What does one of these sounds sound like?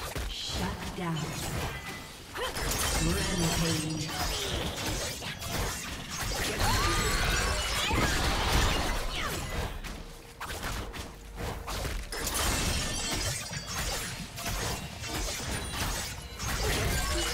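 Game characters' weapons strike with sharp impacts.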